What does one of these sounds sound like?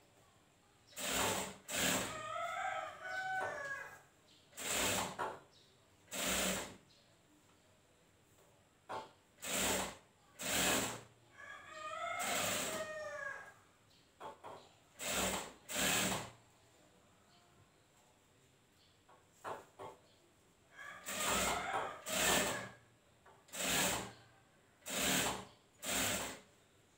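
A sewing machine whirs in short bursts, starting and stopping again and again.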